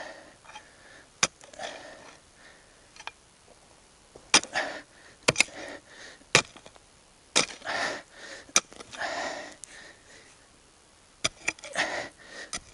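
A shovel scrapes and digs into gravelly soil.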